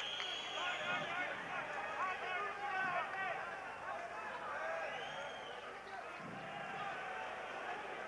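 A crowd shouts and whistles in a large hall.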